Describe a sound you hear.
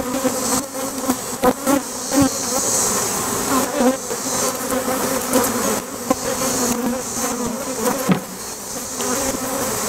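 Wooden hive boxes knock and thud as they are lifted and set down.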